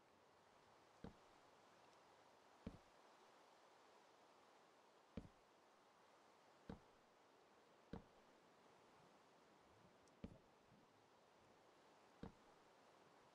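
Blocks knock sharply now and then as they are placed.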